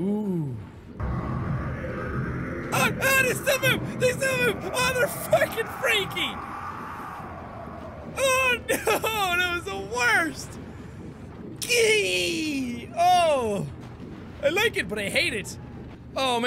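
A young man talks with animation and laughs into a close microphone.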